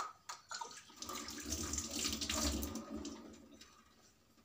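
Water runs from a tap into a metal sink.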